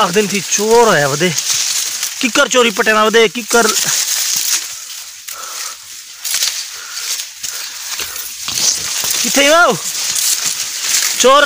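A young man speaks with animation, close to the microphone.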